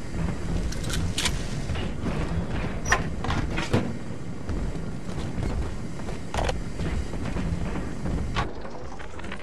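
Water rumbles and bubbles deep underwater.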